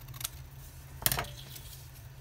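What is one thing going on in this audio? Scissors clatter down onto a table.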